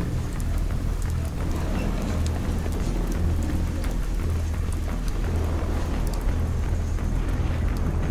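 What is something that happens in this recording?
Footsteps thump on wooden boards.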